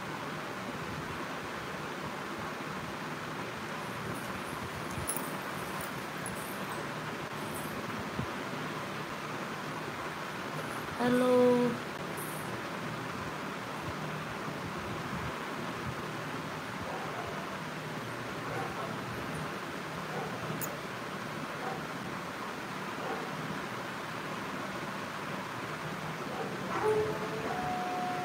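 A woman speaks calmly, close to the microphone.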